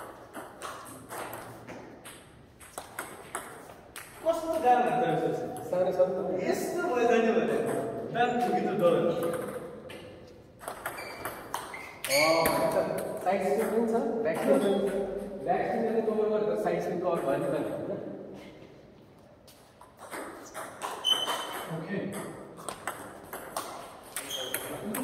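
Ping-pong balls click rapidly off paddles and a table.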